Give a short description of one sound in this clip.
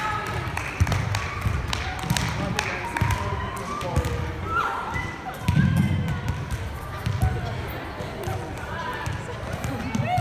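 A crowd of young people cheer and scream excitedly in a large echoing hall.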